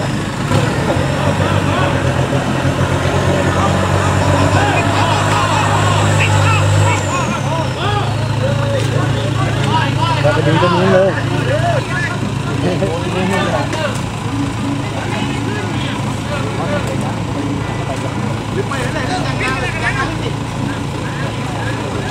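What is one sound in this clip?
Men shout and call out with animation nearby.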